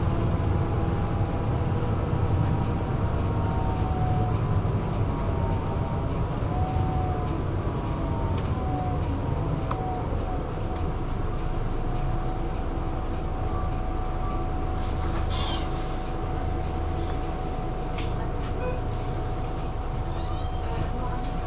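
Tyres roll steadily on asphalt.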